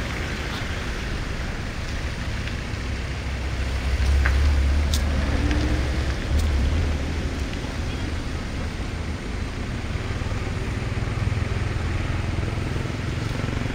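An elephant chews grass noisily.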